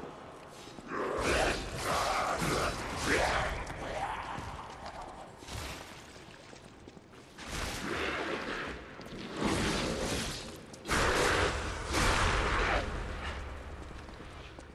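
Weapons clash and fire crackles in a fierce fight.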